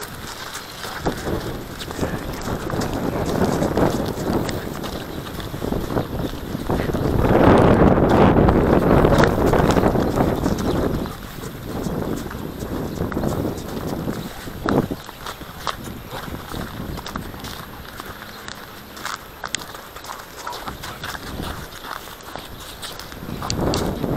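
Wind rushes past the microphone outdoors.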